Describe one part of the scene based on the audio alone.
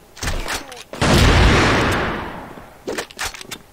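A rifle fires a loud shot that rings out and fades.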